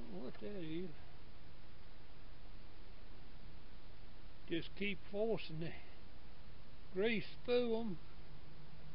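A man speaks in short, calm phrases close by.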